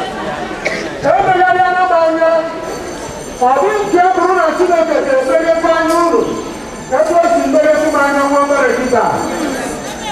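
A large crowd of women sings together outdoors.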